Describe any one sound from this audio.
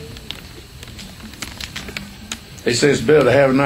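A plastic bottle cap crackles as it is twisted open.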